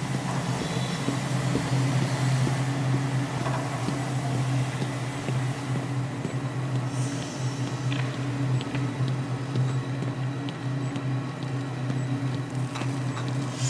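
Heavy footsteps clank on a metal grating.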